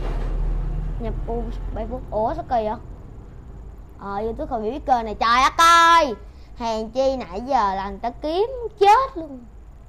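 A young boy speaks close to a microphone with animation.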